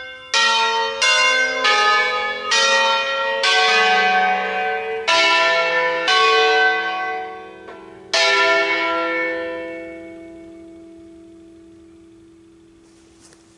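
Church bells ring out in a quick peal, then slowly fade and ring on.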